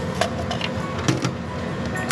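A button clicks on a coffee machine.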